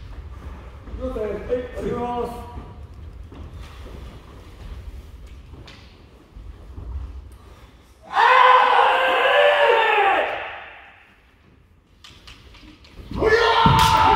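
Men shout loud, drawn-out cries that echo through a large hall.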